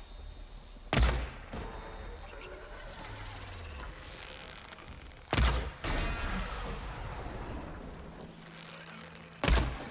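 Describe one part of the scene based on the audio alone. A bow twangs as arrows are shot.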